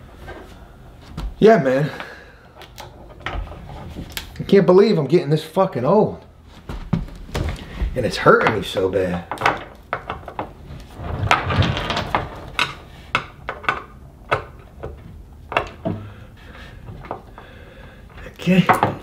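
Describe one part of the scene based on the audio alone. Small metal parts click and tap against wood.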